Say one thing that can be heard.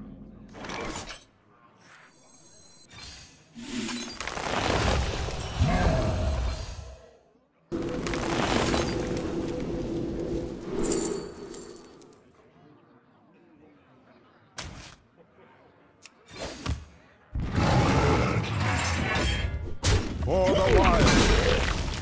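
Digital card game sound effects whoosh, chime and thud in bursts.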